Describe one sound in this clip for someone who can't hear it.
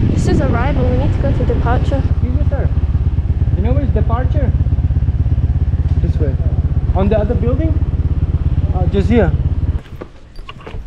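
A motorbike engine hums loudly and revs up and down.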